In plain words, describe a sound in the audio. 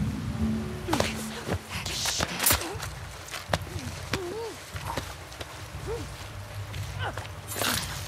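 A body thuds against the ground.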